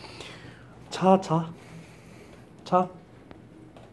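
A small dog gives short, sharp yaps.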